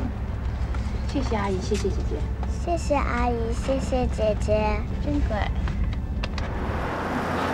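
A young girl talks in a high, lively voice.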